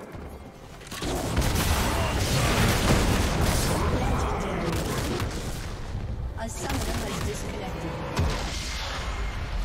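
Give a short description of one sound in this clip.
Magic blasts and explosions crackle and boom in a fight.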